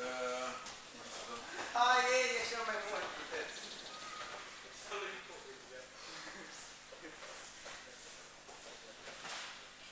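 Feet shuffle and thud on a padded mat.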